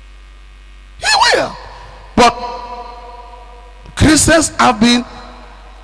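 A man speaks with animation through a microphone, echoing in a large hall.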